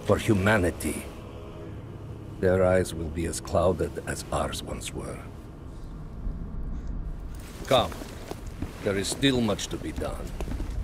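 A middle-aged man speaks in a low, calm voice.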